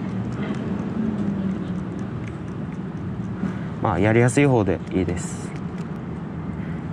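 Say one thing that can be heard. A fishing reel clicks softly as it is adjusted by hand.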